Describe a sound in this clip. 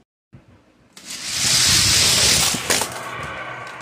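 Toy cars roll and rattle down a plastic track.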